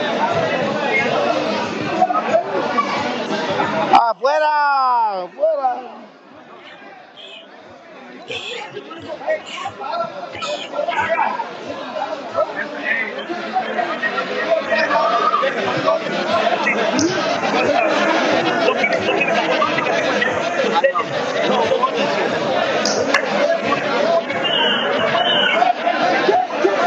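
A crowd of people chatter and shout in a large echoing hall.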